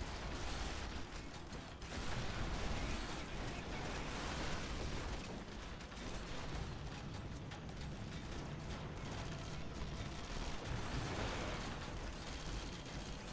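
A large mech robot stomps heavily over the ground with loud clanking footsteps.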